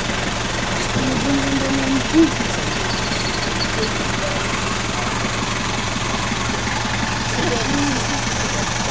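A man speaks outdoors at a distance.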